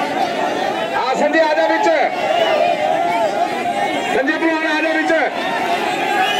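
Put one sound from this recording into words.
Men in the crowd call out loudly over the noise.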